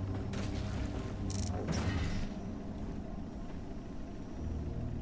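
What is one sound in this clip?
A large machine hums low and steadily.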